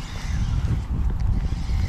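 A spinning reel is cranked, winding in fishing line.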